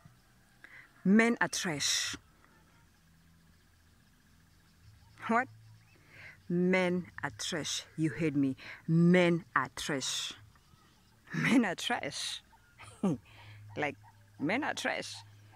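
A woman speaks calmly and with animation close to the microphone.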